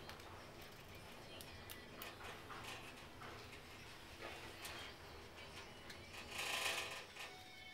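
An elevator hums quietly as it rises.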